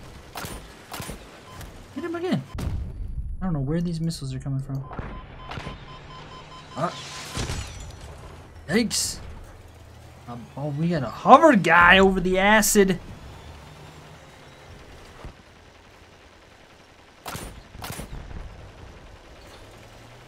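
Heavy guns fire in short bursts.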